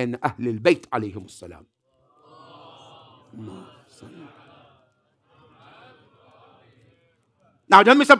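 A man speaks with emotion into a microphone, his voice breaking into sobbing.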